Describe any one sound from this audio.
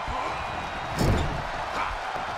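A heavy thud of a body slam hits the ring.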